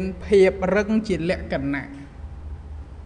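A man speaks briefly and calmly, close by.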